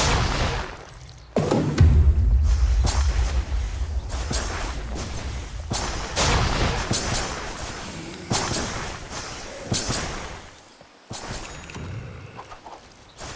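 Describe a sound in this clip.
Game characters clash with magic spells and blows.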